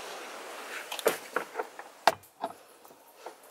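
A glass bottle knocks into a cup holder.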